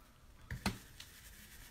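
A thin stencil sheet taps and rustles against a wooden block.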